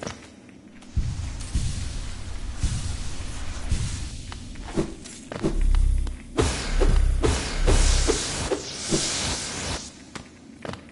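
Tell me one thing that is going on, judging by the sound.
A deep rumbling roar swells and then fades.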